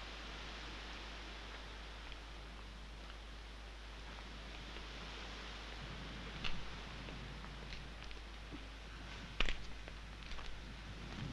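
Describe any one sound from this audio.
Footsteps scuff on a paved road.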